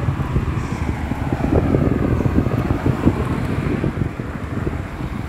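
Cars drive past on a nearby road with a low, steady rumble.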